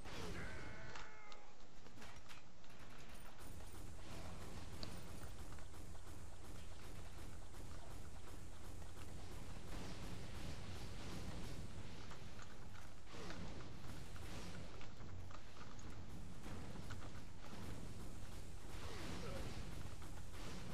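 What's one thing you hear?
Energy blasts crackle and burst.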